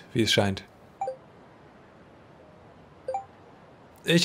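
A short, soft chime sounds twice.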